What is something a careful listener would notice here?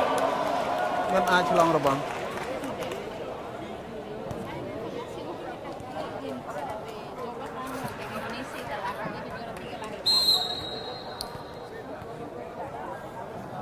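A large indoor crowd murmurs and cheers, echoing through a hall.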